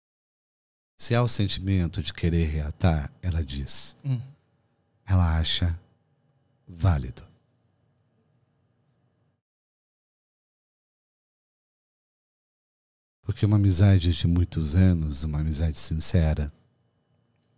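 A middle-aged man talks with animation into a close microphone, with pauses.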